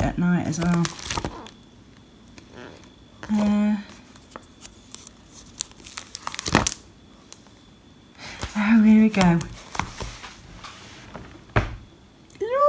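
Stiff album pages rustle and flap as they are turned.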